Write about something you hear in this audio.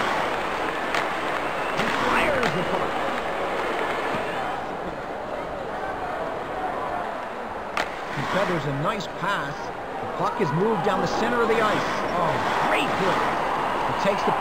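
A hockey puck clacks off a stick.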